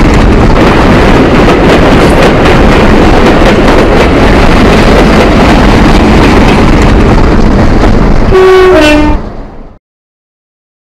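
A small model locomotive rumbles and clatters along the track close by.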